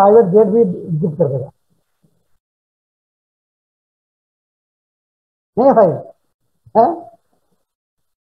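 A man speaks calmly into a headset microphone over an online call.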